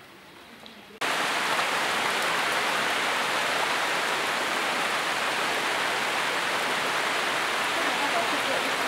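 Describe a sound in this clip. Steady rain pours down onto a tiled roof.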